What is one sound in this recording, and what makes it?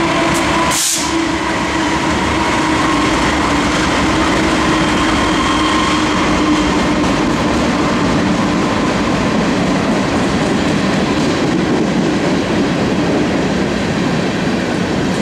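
Diesel locomotives rumble steadily as a long freight train rolls past close by.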